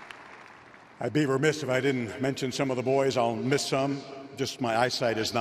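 An older man speaks into a microphone over a loudspeaker, echoing around the stadium.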